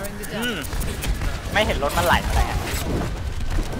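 A game weapon fires rapid energy shots.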